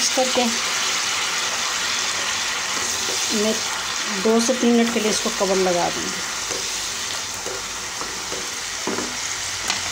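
A wooden spoon stirs and scrapes through thick sauce.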